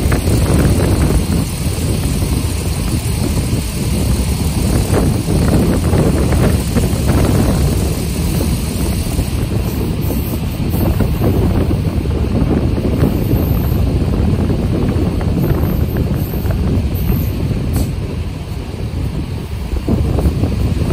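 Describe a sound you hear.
A train rumbles and clatters steadily along the rails.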